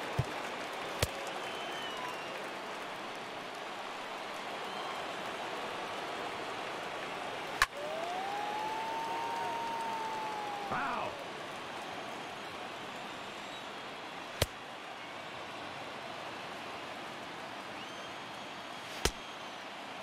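A baseball pops into a catcher's mitt.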